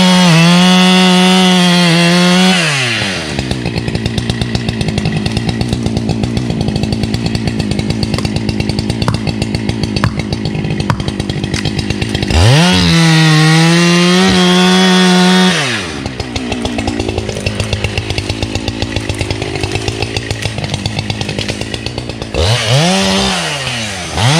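A chainsaw revs loudly at times and idles with a steady chug in between.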